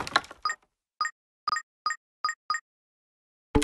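Short bright chimes ring out in quick succession.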